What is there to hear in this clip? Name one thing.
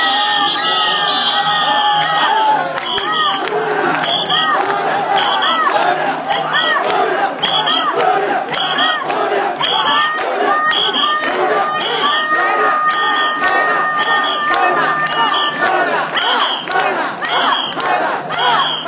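A large crowd of men chant loudly in a steady rhythm.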